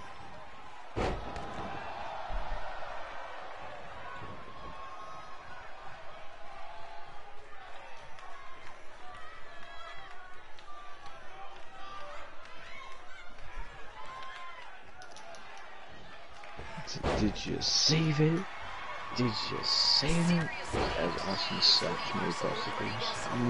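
A body slams onto a wrestling mat with heavy thuds.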